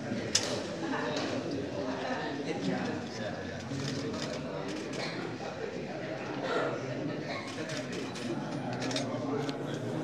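A crowd of adults murmurs and talks at once, close by.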